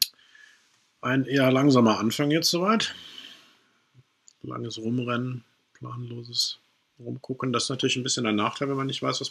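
A man talks calmly and with animation into a close microphone.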